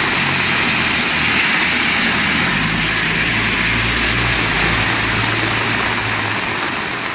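Heavy rain pours down steadily onto a road.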